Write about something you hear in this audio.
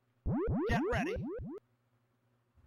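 A video game plays a quick run of rising electronic chimes.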